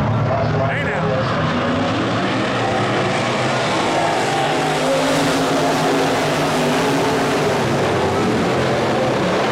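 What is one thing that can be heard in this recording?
Several race car engines roar loudly nearby.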